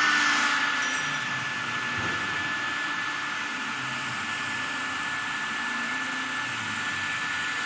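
A hot air gun blows with a steady roar and a high whine.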